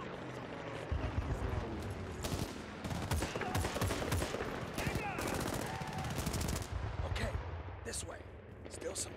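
A rifle fires a quick series of sharp, loud shots.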